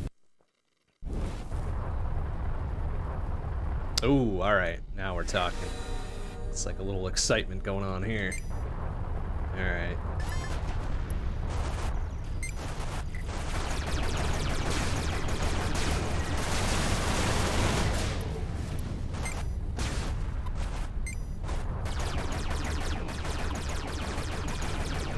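A spaceship engine hums and roars steadily in a video game.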